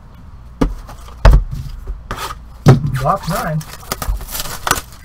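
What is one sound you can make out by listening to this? Cardboard boxes knock and thud.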